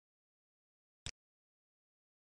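A computer mouse clicks once.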